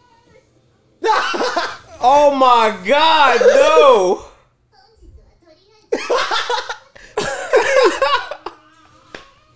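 A young man laughs loudly close to a microphone.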